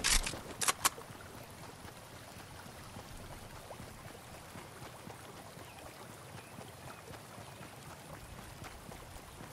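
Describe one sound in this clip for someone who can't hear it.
Footsteps patter softly on grass as a game character runs.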